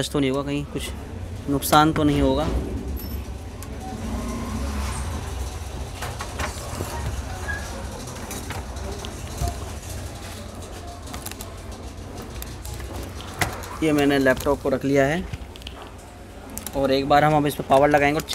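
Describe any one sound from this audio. Plastic and metal parts click and rattle as a laptop is handled.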